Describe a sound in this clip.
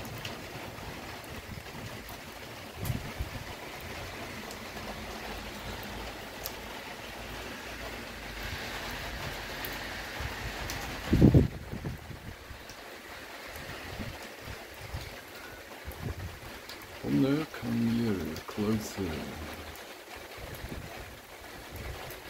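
Wind blows and buffets steadily outdoors.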